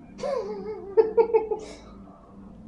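Young men laugh.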